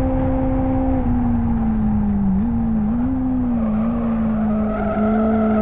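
Engine revs fall and waver as a car brakes into a corner.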